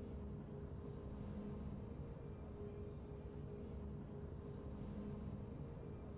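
Soft, steady game music plays quietly.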